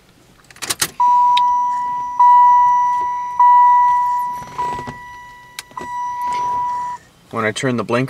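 A car's warning chime beeps steadily and repeatedly.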